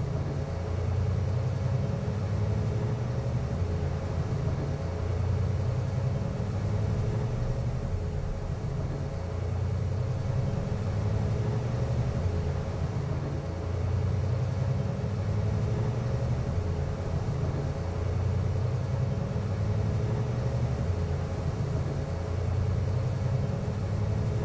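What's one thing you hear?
A van engine hums steadily as it drives along.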